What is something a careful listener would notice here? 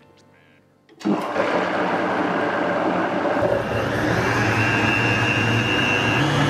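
A blender whirs loudly, blending a thick liquid.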